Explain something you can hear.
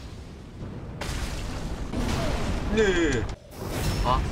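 A fireball bursts with a loud roar.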